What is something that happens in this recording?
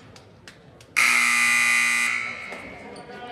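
A loud buzzer sounds in a large echoing gym.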